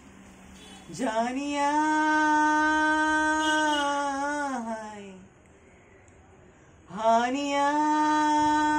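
A young man sings loudly up close, holding long notes.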